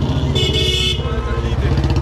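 A motorcycle engine rumbles as it rides past close by.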